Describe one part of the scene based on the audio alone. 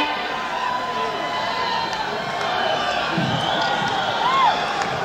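A huge crowd cheers and roars outdoors.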